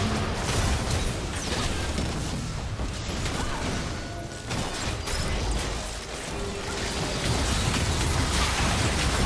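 Video game spell effects crackle and boom during a fight.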